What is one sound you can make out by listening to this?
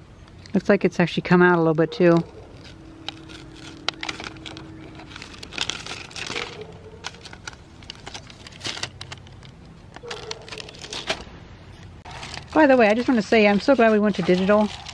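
Stiff paper and card rustle and crinkle as they are handled close by.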